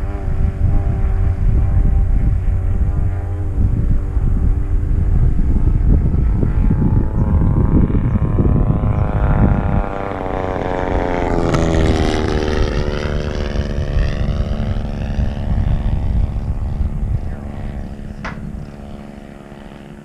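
A model plane's engine whines overhead, rising in pitch as it passes and fading away.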